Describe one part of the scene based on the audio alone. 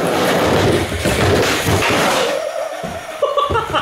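A skateboard clatters on a wooden ramp.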